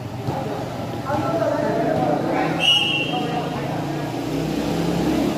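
A crowd of young people chatters and calls out nearby.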